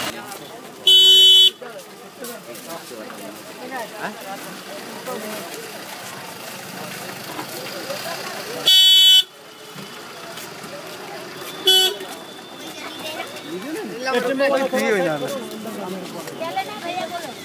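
A crowd of men murmurs and talks nearby.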